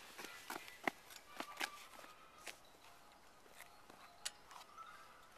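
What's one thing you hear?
A child's bicycle clicks and rattles as it is pushed along.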